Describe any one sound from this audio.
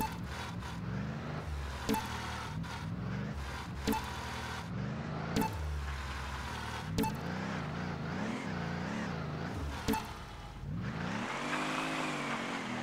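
A truck's engine revs up and down.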